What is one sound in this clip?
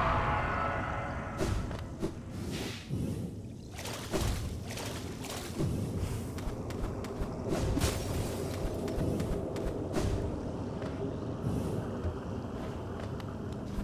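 Light footsteps and landing thuds tap in quick succession.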